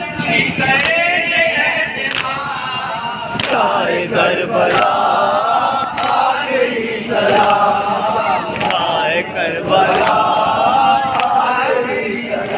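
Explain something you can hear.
A man chants loudly through a loudspeaker.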